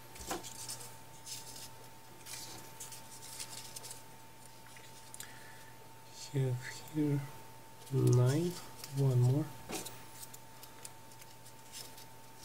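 Paper pieces rustle and crinkle softly as fingers fold and fit them together.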